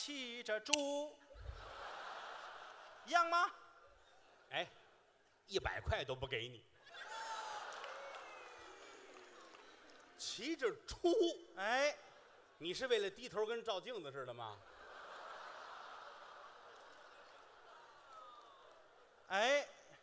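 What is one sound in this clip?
A large audience laughs and applauds in a big hall.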